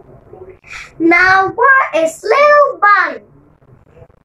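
A young girl reads aloud close by.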